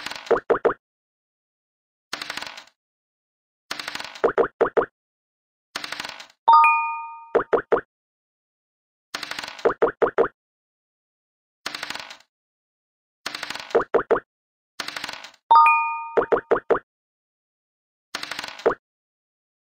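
Game pieces tap in quick hops along a board.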